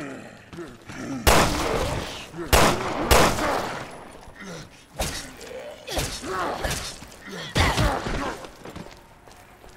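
A monstrous creature groans and growls.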